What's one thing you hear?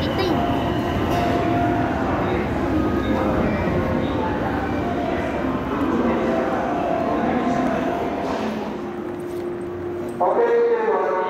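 A train rumbles slowly into a station.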